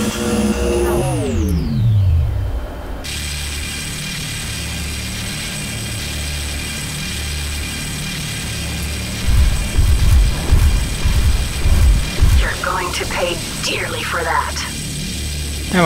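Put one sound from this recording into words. A laser beam hums as it fires.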